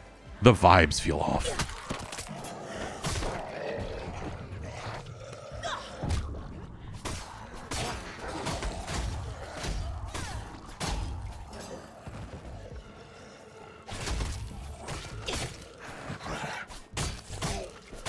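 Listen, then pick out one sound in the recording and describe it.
Zombies snarl and growl.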